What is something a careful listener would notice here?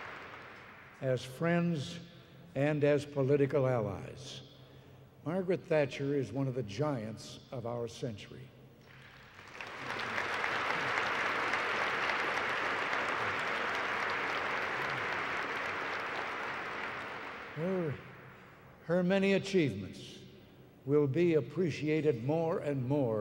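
An elderly man speaks with good humour into a microphone in a large hall.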